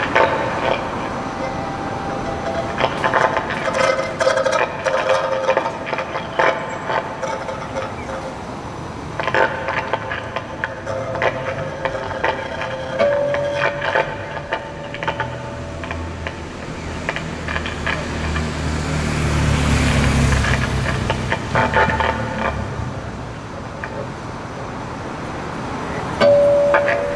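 Acoustic guitars play plucked notes outdoors.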